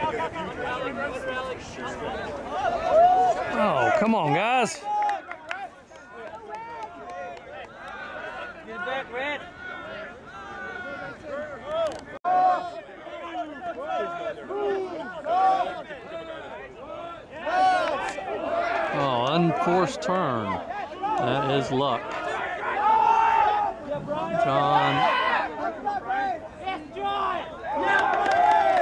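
A group of young men shout and cheer from close by, outdoors.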